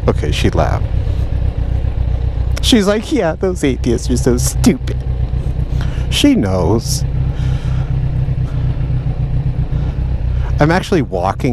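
A motorcycle engine rumbles steadily up close.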